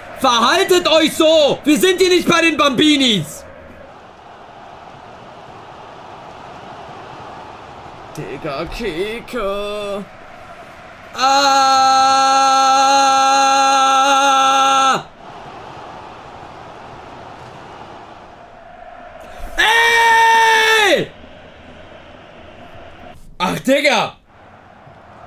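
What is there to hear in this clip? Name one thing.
A young man shouts and speaks with animation close to a microphone.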